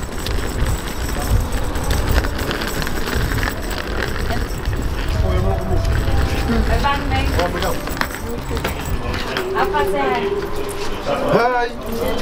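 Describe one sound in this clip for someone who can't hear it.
Suitcase wheels rumble over pavement.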